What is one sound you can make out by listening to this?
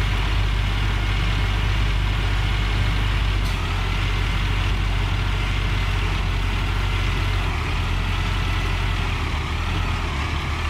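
A heavy diesel engine rumbles steadily as an excavator drives along.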